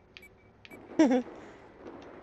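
A young man makes a short exclamation close to a microphone.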